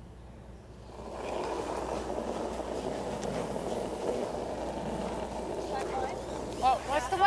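A curling stone rumbles as it slides across the ice.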